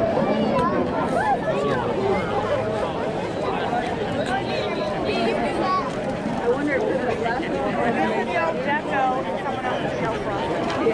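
A crowd of men and women chatters all around outdoors.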